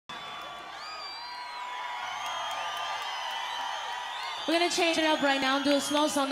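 A crowd cheers and whistles loudly at a live concert.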